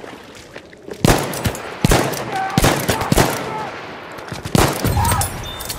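A revolver fires several loud, sharp shots.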